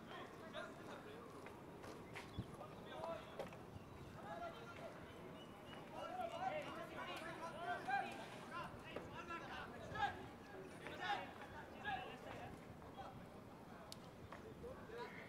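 Young men shout and call out across an open field.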